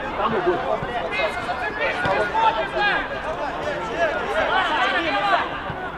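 Players shout to each other across an outdoor pitch.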